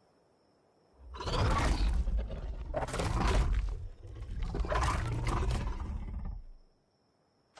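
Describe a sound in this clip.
A large creature growls and roars loudly nearby.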